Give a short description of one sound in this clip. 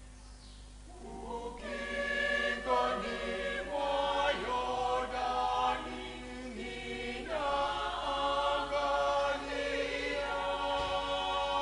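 A choir sings together in a large echoing hall.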